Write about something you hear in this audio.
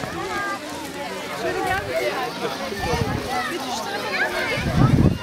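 Many children chatter and shout nearby outdoors.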